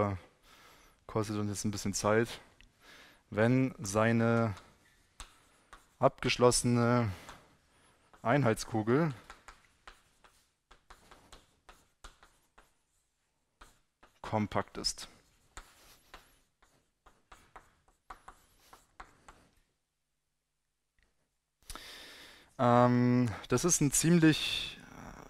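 A man lectures calmly into a microphone in an echoing hall.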